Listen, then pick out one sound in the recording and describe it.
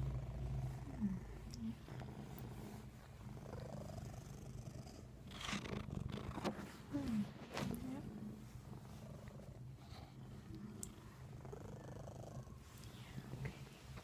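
A teenage boy talks quietly, close to the microphone.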